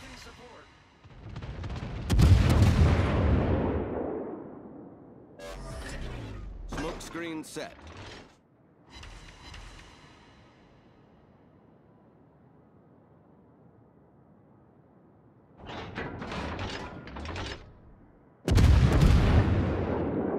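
Heavy ship guns fire with deep, rumbling booms.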